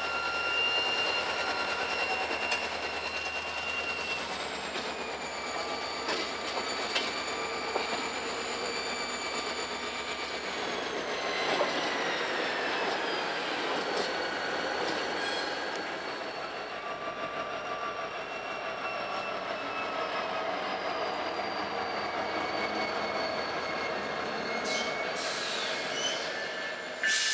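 Steel train wheels squeal on the rails.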